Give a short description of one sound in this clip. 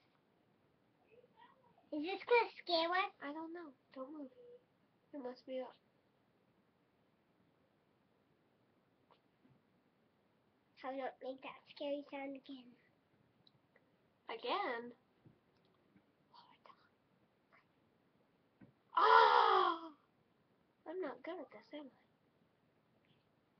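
A young girl speaks briefly close by.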